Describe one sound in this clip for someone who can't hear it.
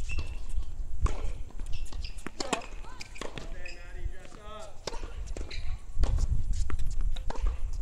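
A tennis ball is struck by a racket with a sharp pop.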